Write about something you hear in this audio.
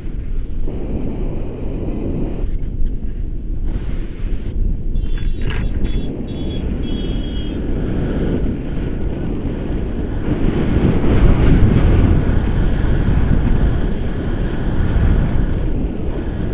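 Wind roars and buffets loudly outdoors, gusting stronger at times.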